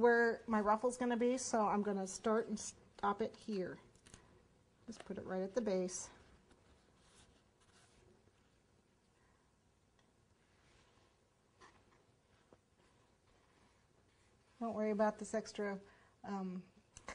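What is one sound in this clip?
A woman speaks calmly and close to a microphone, pausing for a while.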